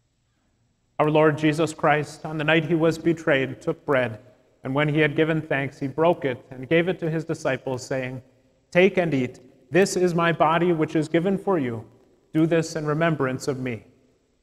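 A man speaks steadily, heard through a microphone.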